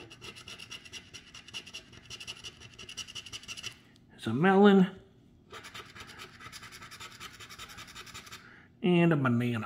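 A coin scratches rapidly across a paper card.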